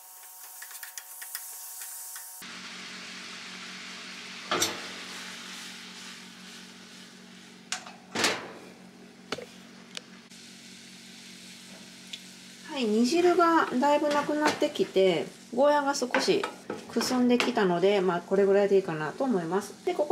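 A wooden spatula scrapes and knocks against a pan.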